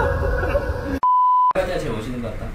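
A steady test beep sounds briefly.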